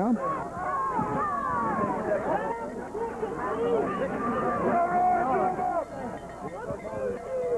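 A large stadium crowd cheers and shouts loudly outdoors.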